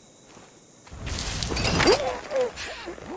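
A blade stabs with a heavy thud.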